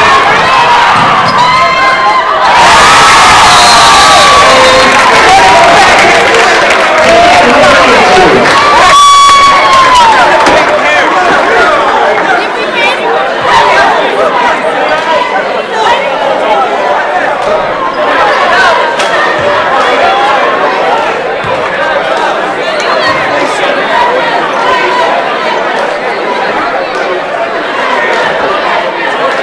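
A large crowd chatters in a big echoing gym.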